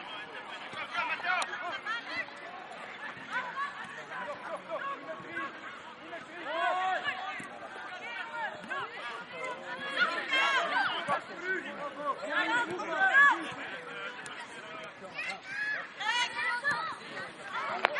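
Young players shout and call to each other across an open outdoor field.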